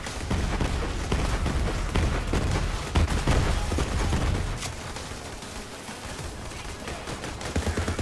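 Electric sparks crackle and zap.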